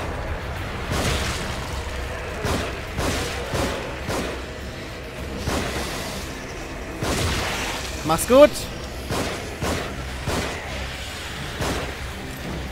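Loud explosions burst.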